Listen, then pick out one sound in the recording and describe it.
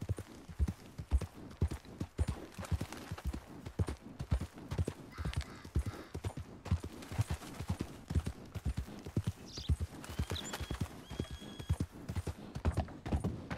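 Horse hooves clop steadily along a dirt trail.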